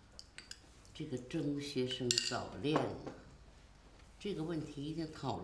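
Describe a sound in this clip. An elderly woman speaks calmly, close by.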